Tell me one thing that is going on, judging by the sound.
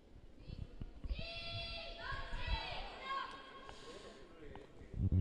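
A young woman shouts across an echoing ice rink.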